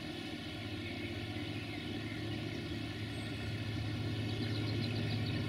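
A river rushes and splashes over stones.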